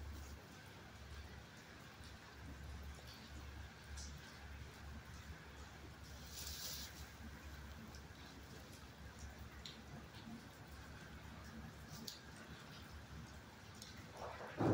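A dog sniffs close by.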